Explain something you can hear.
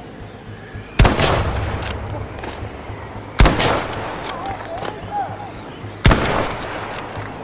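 A rifle fires loud single shots that echo.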